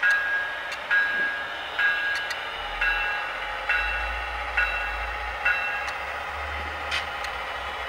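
Model train wheels click over rail joints at a steady pace.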